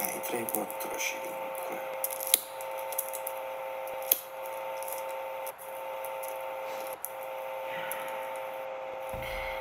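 Playing cards tap softly on a table.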